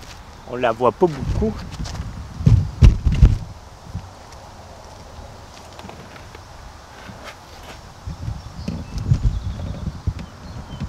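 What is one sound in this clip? Hands knock and rub against a plastic kayak hull.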